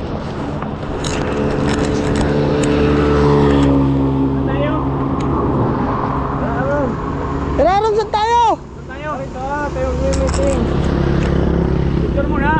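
A motorbike engine idles steadily close by.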